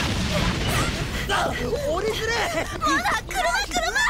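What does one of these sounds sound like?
A young woman shouts in alarm.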